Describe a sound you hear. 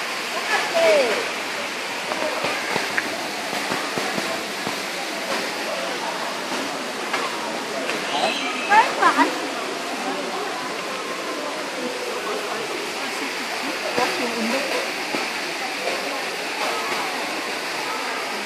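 A crowd of adults chatters nearby.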